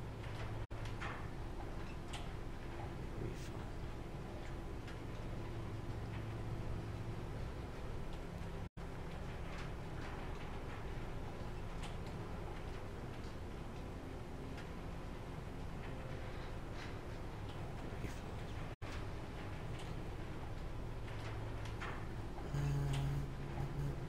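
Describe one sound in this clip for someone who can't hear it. A low steady hum plays throughout.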